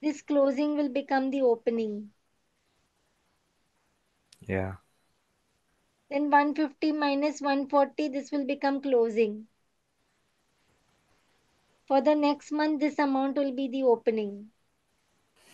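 A woman speaks calmly through a microphone, pausing between phrases.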